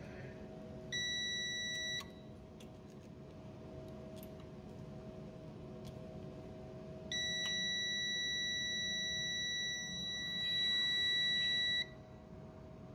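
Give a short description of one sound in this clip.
A multimeter gives a steady, high beep.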